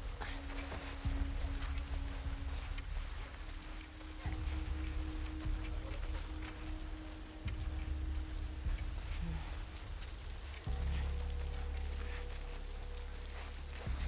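Tall grass rustles as a person crawls through it.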